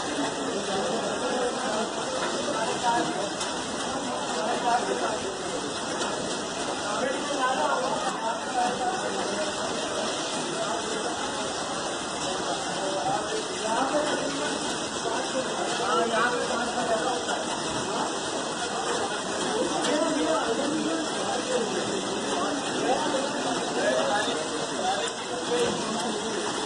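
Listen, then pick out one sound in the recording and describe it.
Several men talk and call out to each other nearby.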